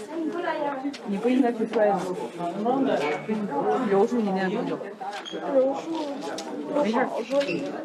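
A teenage girl answers quietly close by.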